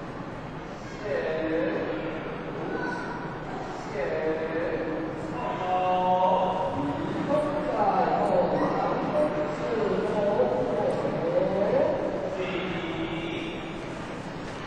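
A crowd of people raises their voices in a large echoing hall.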